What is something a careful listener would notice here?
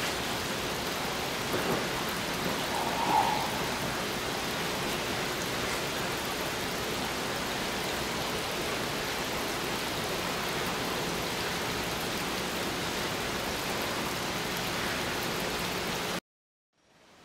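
Water trickles and splashes steadily into a fountain basin.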